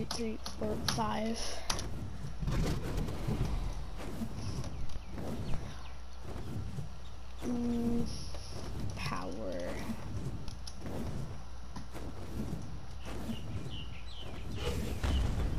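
Large leathery wings flap heavily.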